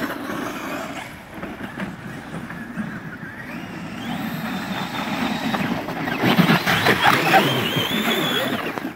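Small electric motors whine as remote-control cars race over snow.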